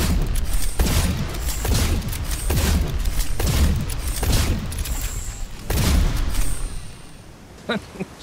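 Rapid laser gunfire blasts in quick bursts.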